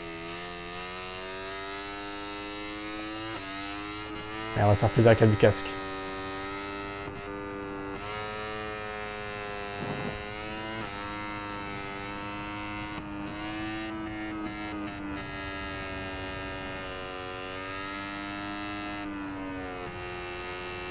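A motorcycle engine whines at high revs, rising and falling in pitch as it shifts gears.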